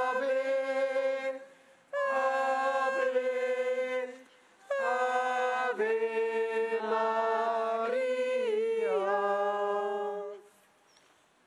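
A man sings a slow chant through a microphone.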